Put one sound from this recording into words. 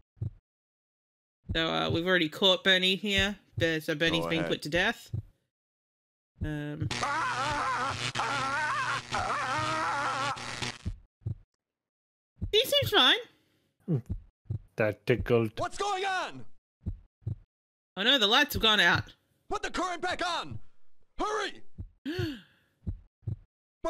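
Men laugh over an online call.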